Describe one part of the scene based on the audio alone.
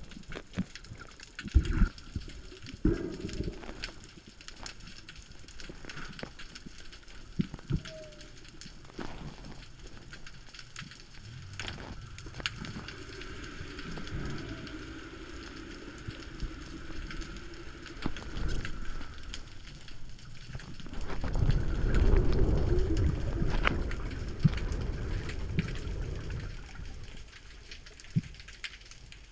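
Water swirls and rumbles underwater.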